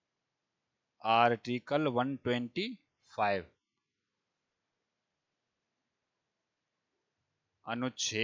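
A man speaks calmly and closely through a headset microphone.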